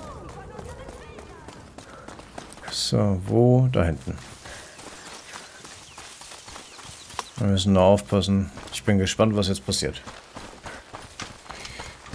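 Footsteps run over dry dirt and grass.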